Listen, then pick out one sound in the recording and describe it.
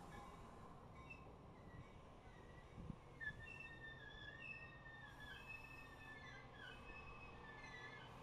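Train wheels squeal faintly on the rails.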